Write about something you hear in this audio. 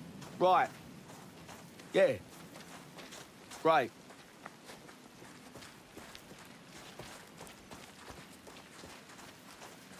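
Footsteps crunch on gravel and rock.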